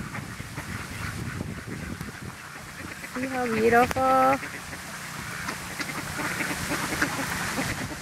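Fountains splash steadily into a pond outdoors.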